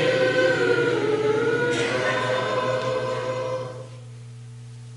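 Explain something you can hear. A man sings through a microphone in an echoing hall.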